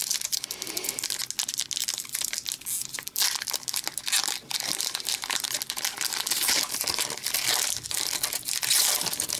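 A foil wrapper crinkles and rustles close by as it is torn open.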